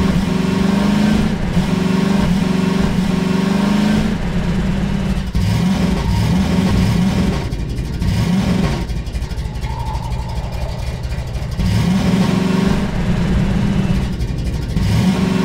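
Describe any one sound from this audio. A buggy engine hums and revs steadily.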